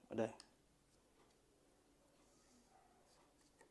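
A small screwdriver clicks faintly as it turns a screw.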